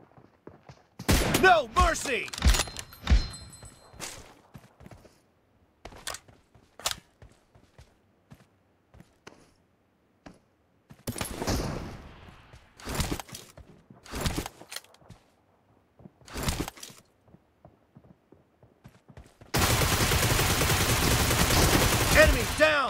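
Gunshots fire in short bursts close by.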